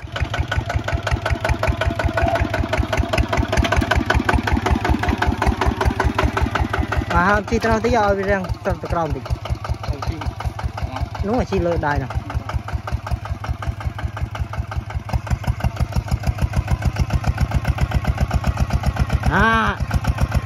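A small diesel engine chugs rapidly and steadily close by.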